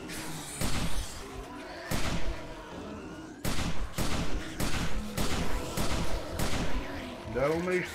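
A gun fires shot after shot.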